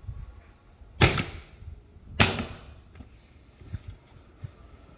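A sledgehammer strikes a tyre's rim with loud metallic bangs.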